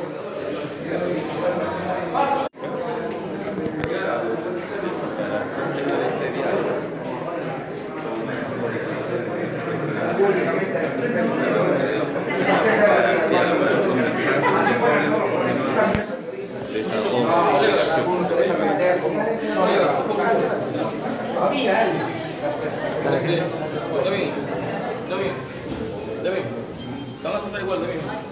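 A crowd of men and women talk and shout excitedly close by.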